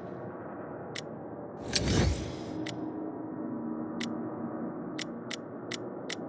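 Game menu clicks tick now and then.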